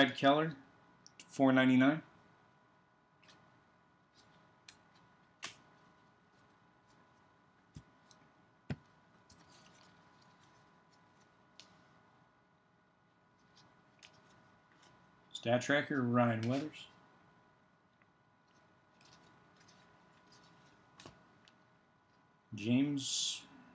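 Stiff trading cards rustle and click softly as they are handled and shuffled.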